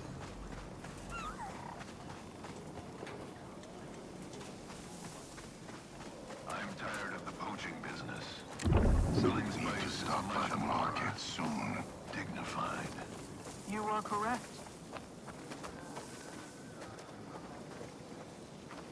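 Footsteps run over dirt and gravel.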